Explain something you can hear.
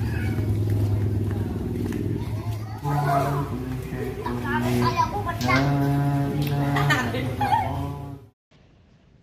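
Children sing together loudly.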